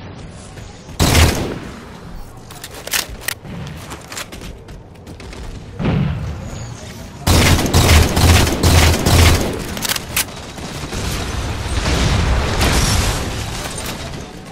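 Rapid gunfire bursts loudly close by.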